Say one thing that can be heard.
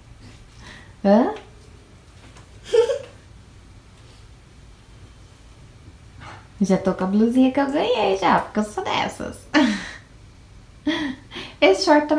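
A young girl talks and calls out with animation close by.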